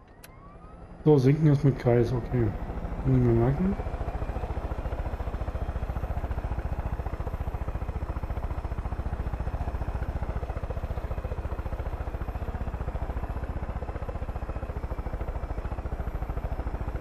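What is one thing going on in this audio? A light helicopter's rotor beats steadily in flight.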